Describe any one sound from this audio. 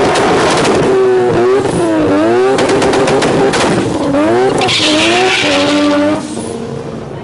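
Car tyres squeal as they spin on the track.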